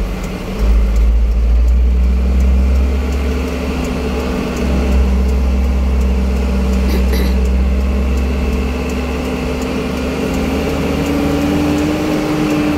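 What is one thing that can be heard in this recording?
A truck engine rumbles steadily close ahead, its pitch rising slowly near the end.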